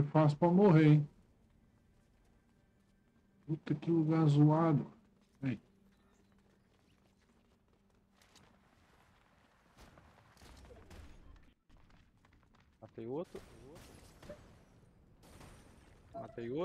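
A middle-aged man talks with animation into a close microphone in short bursts.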